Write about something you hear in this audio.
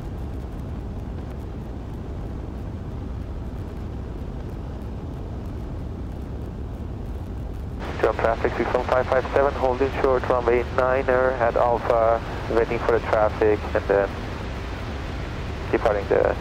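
A small plane's engine drones steadily.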